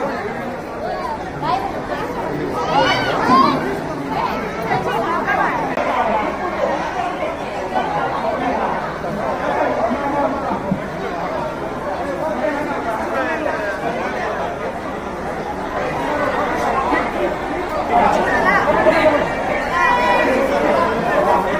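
A woman talks with people close by.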